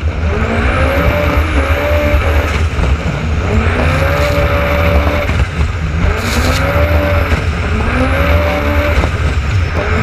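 Water splashes and slaps against a hull.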